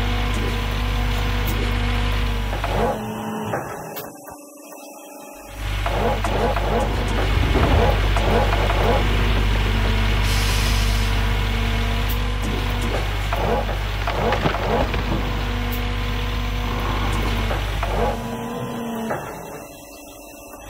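Rocks and dirt rumble and scrape as a bucket digs.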